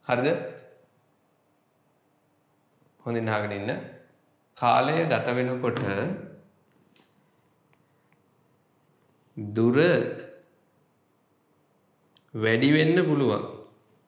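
A young man speaks calmly and clearly, close to a microphone, in short bursts with pauses.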